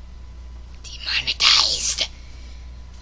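A teenage boy laughs close to a microphone.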